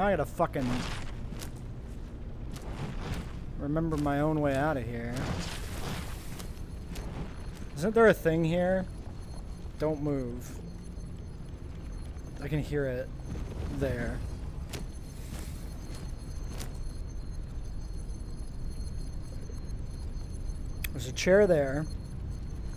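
Footsteps rustle through dry grass and undergrowth.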